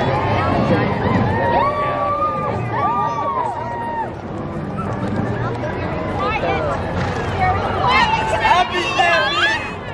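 A large crowd cheers and chatters outdoors.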